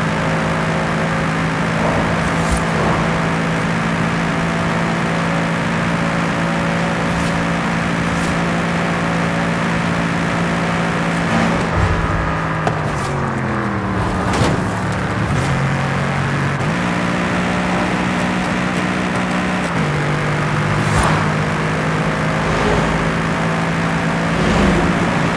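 A sports car engine roars steadily at high speed, drops in pitch as it slows, then climbs again through gear changes.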